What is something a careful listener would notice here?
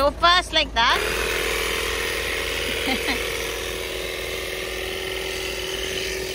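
An electric tyre pump hums and buzzes steadily.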